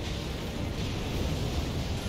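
Fire roars from a dragon's breath.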